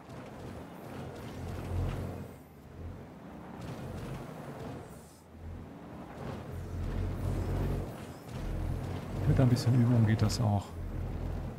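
An off-road buggy engine rumbles and revs.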